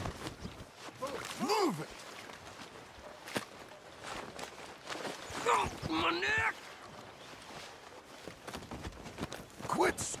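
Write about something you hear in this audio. A man cries out and groans in pain.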